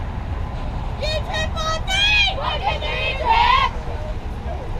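Young girls cheer and shout loudly.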